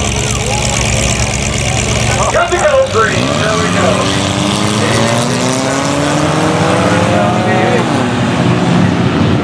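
Race car engines roar and rev loudly outdoors.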